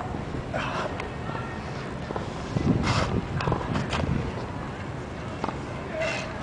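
A young man breathes heavily close by.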